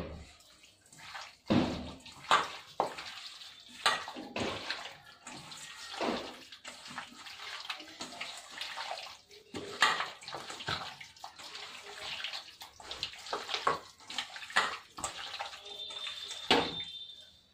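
Hands squish and mix food in a metal bowl.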